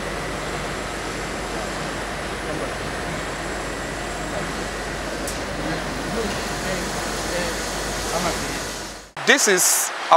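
Machinery whirs and rattles steadily.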